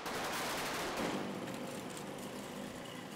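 A cart's wheels rattle along a street.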